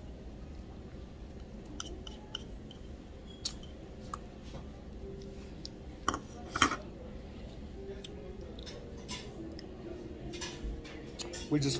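A man chews and smacks his lips while eating.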